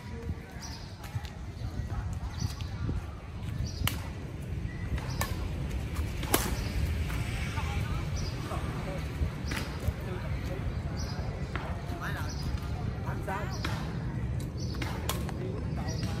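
Rackets hit a shuttlecock back and forth with sharp taps.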